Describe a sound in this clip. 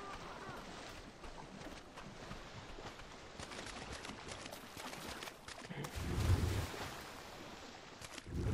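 Shallow water laps gently.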